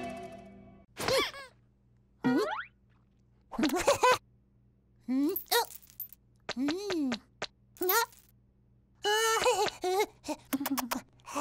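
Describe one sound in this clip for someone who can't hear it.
A cartoon chick cheeps and squeaks in short, high, bending bursts.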